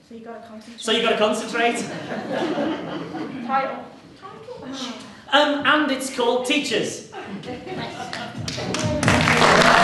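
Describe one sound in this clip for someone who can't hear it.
A man talks with animation in an echoing hall.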